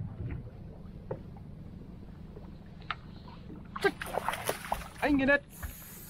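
Water splashes as a fish is landed in a net.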